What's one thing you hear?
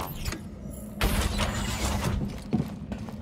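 A heavy metal door slides open with a whoosh.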